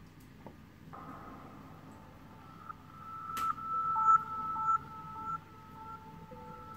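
Electronic game music plays through a phone's small speaker.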